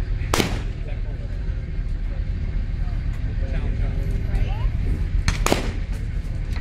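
Shotguns fire sharp, echoing shots outdoors.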